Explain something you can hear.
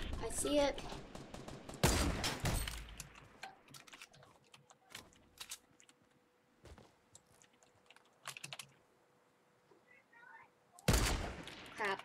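A sniper rifle fires loud shots in a game.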